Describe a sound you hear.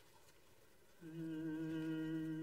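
A man sings a long, steady note into a microphone.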